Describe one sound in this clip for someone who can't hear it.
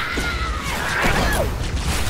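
Energy weapons fire rapid zapping shots nearby.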